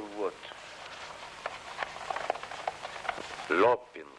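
Paper rustles as a large poster is unrolled.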